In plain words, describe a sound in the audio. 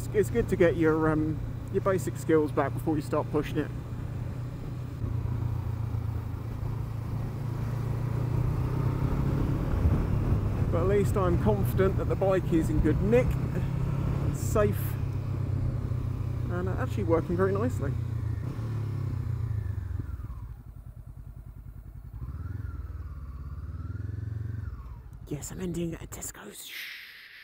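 A motorcycle engine hums steadily as it rides along, revving up now and then.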